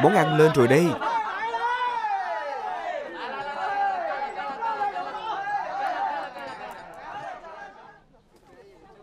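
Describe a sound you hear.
A crowd of people chatters at a distance.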